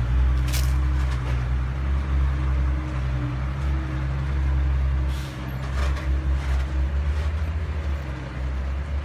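A heavy truck engine rumbles and drives away down a dirt road.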